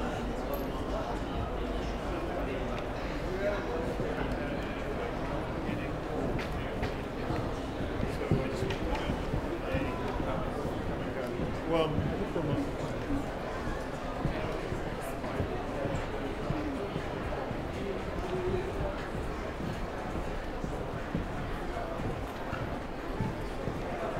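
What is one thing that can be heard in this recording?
A crowd of men and women chatters steadily in a large echoing hall.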